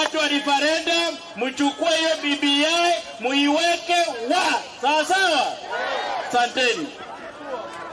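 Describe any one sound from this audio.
A man speaks loudly and forcefully into a microphone.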